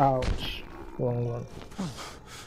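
A body thumps down onto wooden boards.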